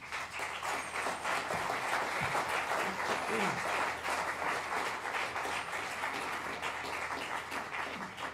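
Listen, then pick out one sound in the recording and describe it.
A small band plays music in a large hall.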